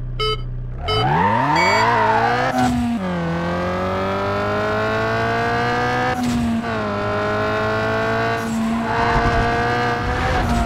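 A car engine revs hard and roars as the car speeds up.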